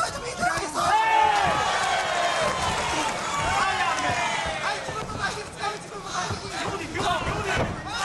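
Gloves thud against bodies as fighters trade punches and kicks.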